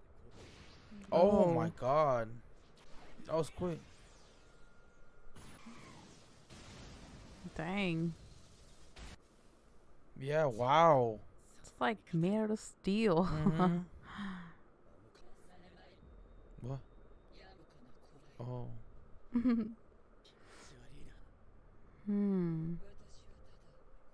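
A young woman speaks close to a microphone.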